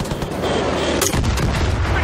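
A rocket launcher fires with a sharp blast.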